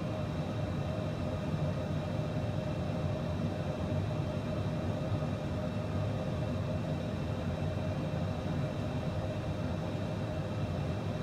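Jet engines hum steadily with a low rumble.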